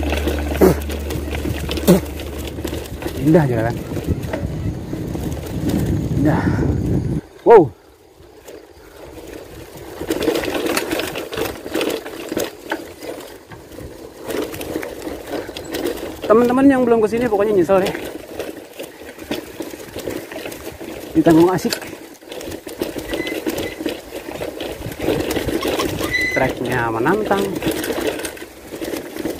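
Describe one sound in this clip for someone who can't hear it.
Bicycle tyres roll and crunch over a bumpy dirt trail.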